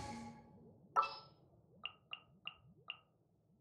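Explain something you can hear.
Soft game menu chimes ping several times in quick succession.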